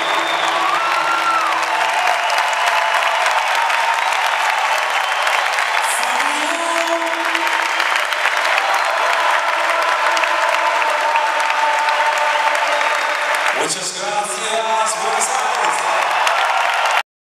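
A man sings through loudspeakers.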